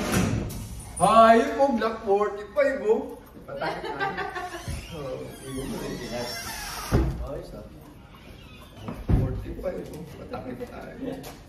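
A man talks and laughs nearby.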